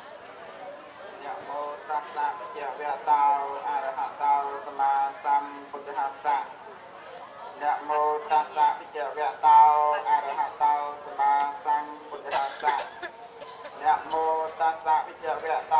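A young man chants through a microphone and loudspeaker.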